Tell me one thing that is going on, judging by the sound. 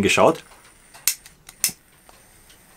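A lighter clicks as it is struck.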